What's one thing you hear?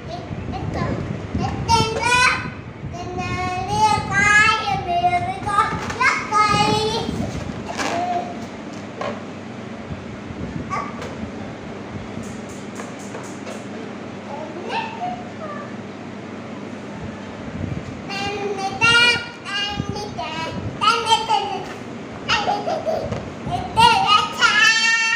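A little girl babbles and sings in a high voice close by.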